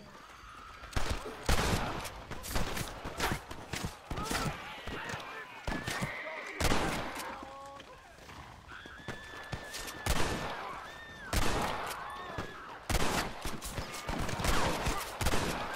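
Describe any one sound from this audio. Gunshots crack repeatedly, loud and sharp.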